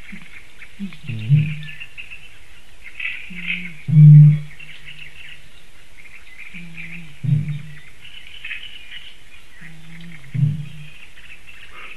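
A bittern booms with deep, hollow calls, again and again.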